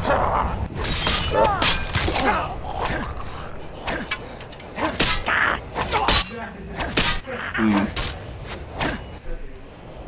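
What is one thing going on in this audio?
Blades strike with sharp metallic hits.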